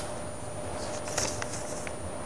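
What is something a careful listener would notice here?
Paper rustles as it is handed over.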